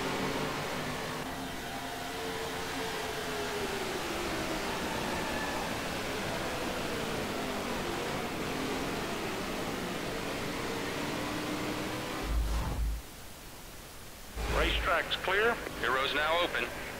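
Race car engines roar together at high speed.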